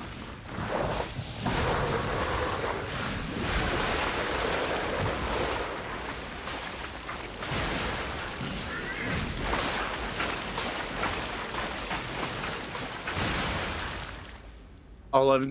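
Heavy metal blows crash and thud in a fight.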